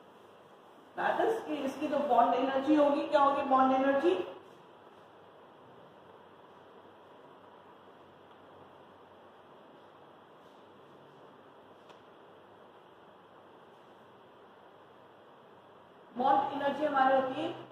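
A middle-aged woman speaks calmly to a class.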